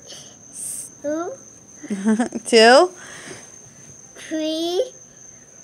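A toddler babbles and squeals playfully close by.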